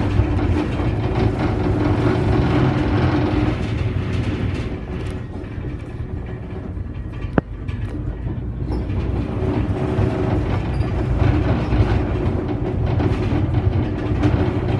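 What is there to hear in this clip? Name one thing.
A bus engine hums and rumbles steadily from inside while driving.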